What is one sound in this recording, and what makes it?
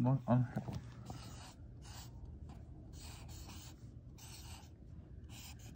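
A marker squeaks in short strokes across paper.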